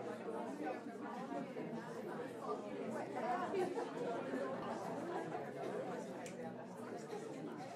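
A crowd of adults chatters and murmurs quietly in a hall.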